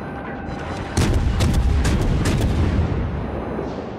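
Heavy shells explode in booming blasts.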